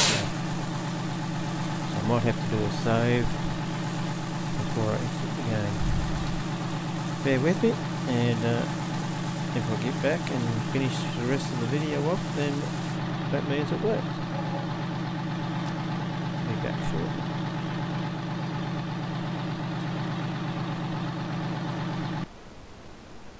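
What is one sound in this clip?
A tractor engine hums steadily at idle.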